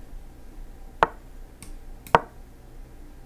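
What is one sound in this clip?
A game piece clicks sharply into place.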